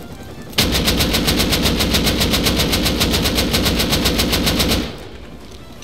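A gun fires a rapid automatic burst at close range.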